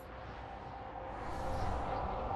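A spaceship engine roars.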